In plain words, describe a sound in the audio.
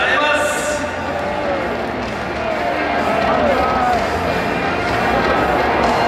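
A group of young men clap their hands.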